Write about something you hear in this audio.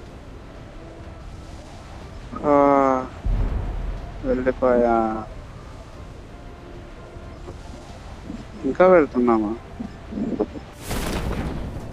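Wind rushes past during a freefall.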